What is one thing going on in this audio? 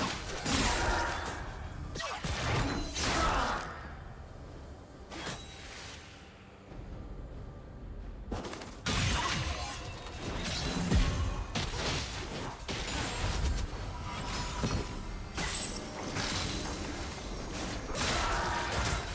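Spell effects whoosh and crackle in a game fight.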